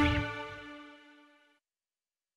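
A band's final chord rings out and fades away.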